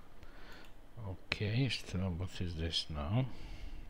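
A middle-aged man speaks calmly into a headset microphone.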